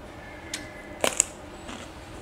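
A crisp vegetable crunches loudly as a woman bites into it.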